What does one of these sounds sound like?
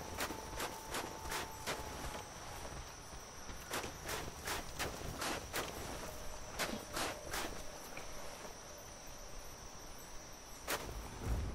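Armoured footsteps clatter quickly down stone stairs.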